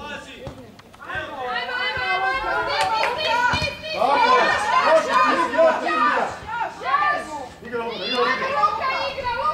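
Spectators nearby shout and cheer excitedly.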